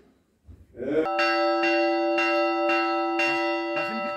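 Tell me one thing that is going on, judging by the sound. A large bell rings loudly and keeps ringing.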